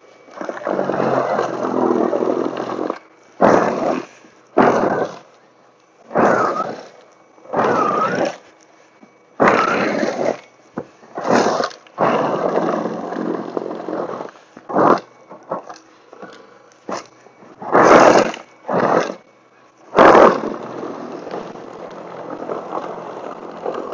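A small electric snow thrower whirs and scrapes through snow in repeated bursts.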